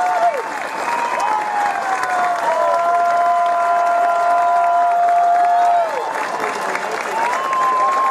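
A crowd claps and cheers.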